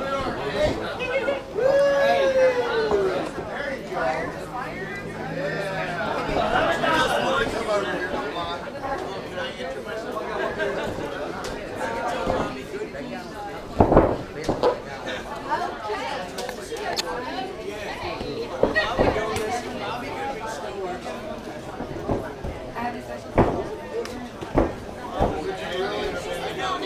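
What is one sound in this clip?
A crowd shouts and cheers throughout.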